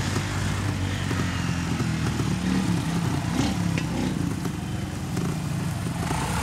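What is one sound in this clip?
A motorcycle engine putters and revs.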